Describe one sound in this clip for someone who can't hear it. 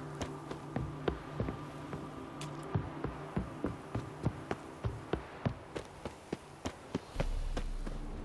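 Footsteps tread quickly on stone steps.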